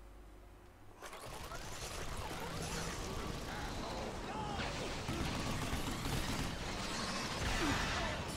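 Heavy machine guns fire rapidly in a video game.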